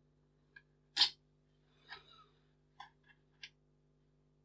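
Metal parts click and clack together as they are fitted.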